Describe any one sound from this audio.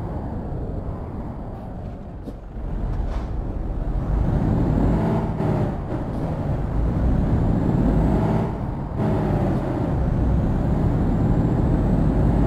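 A truck's diesel engine rumbles and revs up through the gears.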